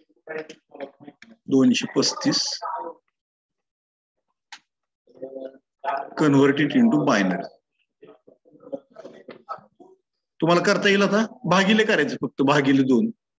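A man explains calmly, heard close through a microphone over an online call.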